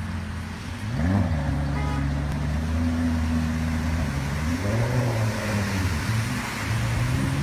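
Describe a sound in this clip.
A car engine hums low and steady while driving through deep water.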